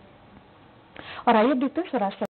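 A young woman reads out the news clearly into a microphone.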